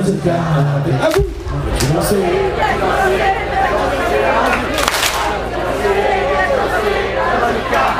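A large crowd sings and cheers along loudly.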